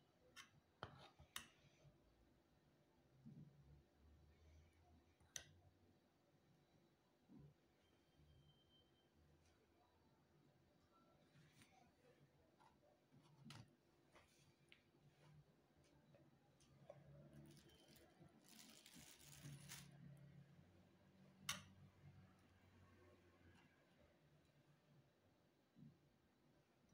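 A spoon scrapes thick liquid in a bowl.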